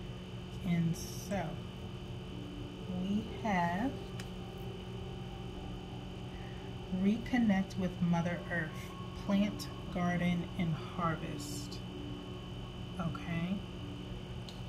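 A woman speaks calmly and softly close by, in short phrases.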